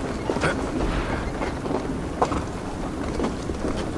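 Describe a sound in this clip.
Hands and feet knock against a wooden lattice while climbing.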